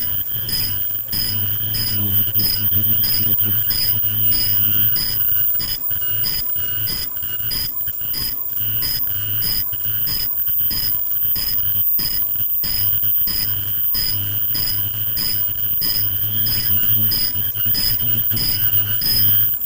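A machine runs with a steady hum and fast, regular clicking.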